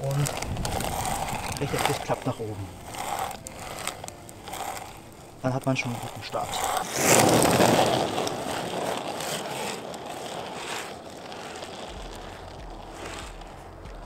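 Small skate wheels roll and grind over rough gravel.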